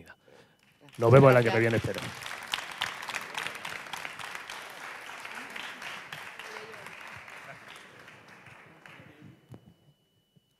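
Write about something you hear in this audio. An audience applauds and cheers in a large room.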